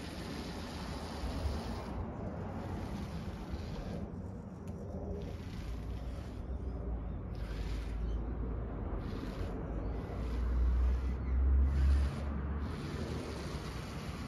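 A small toy car's electric motors whir as its wheels roll over wooden boards.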